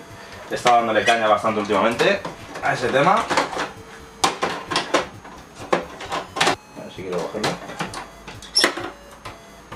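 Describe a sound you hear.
A plastic game cartridge clicks and clatters as it is pushed into a console slot.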